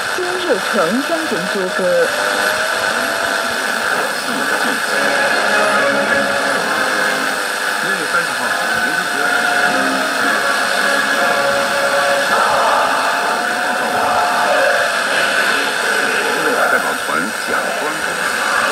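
Wavering whistles and squeals come and go through a radio's static.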